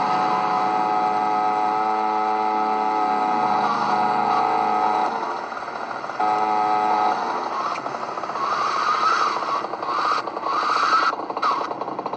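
A motorcycle engine hums steadily in a video game.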